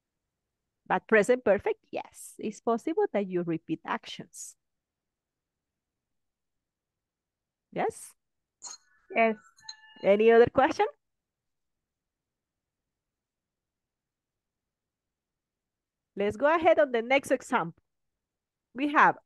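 A woman speaks calmly through an online call, in short bursts with pauses.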